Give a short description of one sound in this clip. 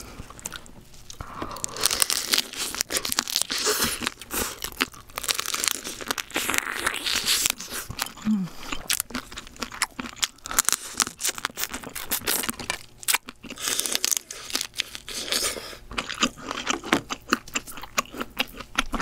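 A young woman chews and smacks her lips loudly close to a microphone.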